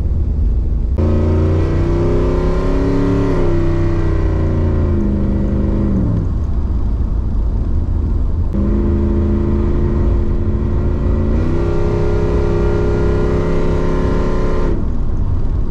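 A car engine revs loudly, its pitch rising and falling.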